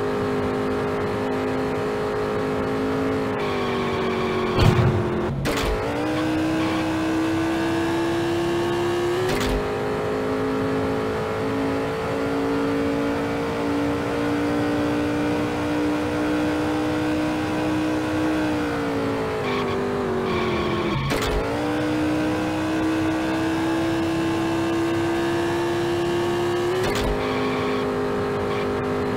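A race car engine roars steadily, its pitch dropping through corners and climbing again on the straights.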